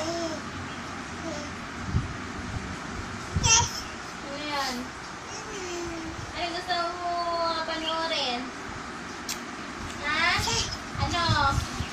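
A baby babbles and coos nearby in high, sing-song sounds.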